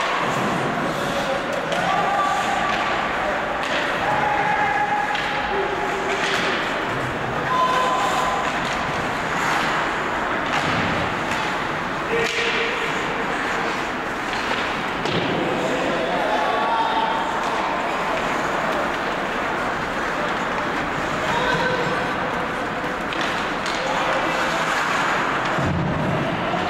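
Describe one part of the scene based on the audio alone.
Ice skates scrape and glide across ice in a large echoing arena.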